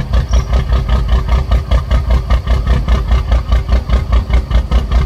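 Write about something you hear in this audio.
A truck's diesel engine rumbles and throbs steadily.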